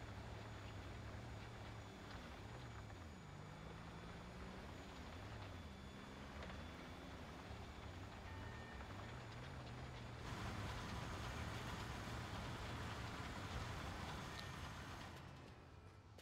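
A road milling drum grinds loudly against asphalt.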